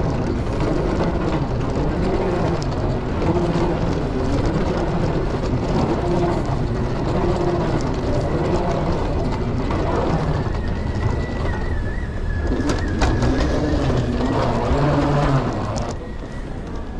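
A moving walkway hums and rumbles steadily.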